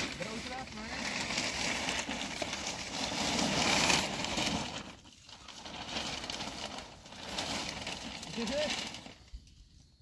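A large plastic sheet rustles and crinkles as it is spread out.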